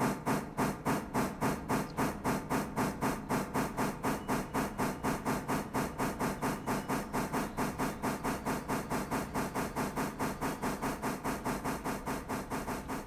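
A steam locomotive chuffs rapidly and steadily as it pulls away.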